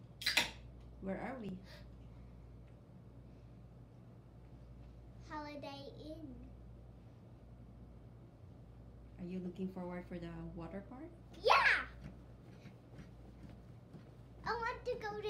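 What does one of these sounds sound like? A young boy talks and laughs close by.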